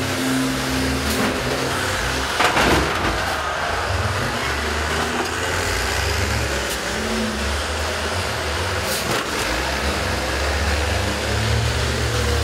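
Bus engines rumble and rev loudly nearby.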